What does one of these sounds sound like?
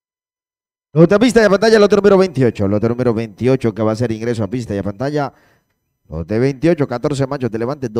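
A man speaks rapidly and with animation over a loudspeaker.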